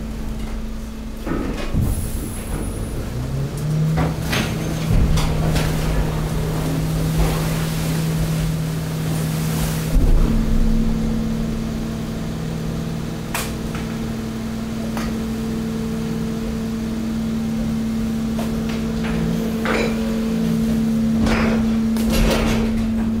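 Rubbish rustles, scrapes and thumps as it slides.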